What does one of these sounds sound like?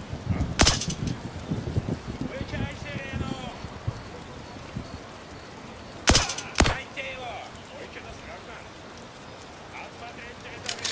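A pistol fires sharp, loud shots.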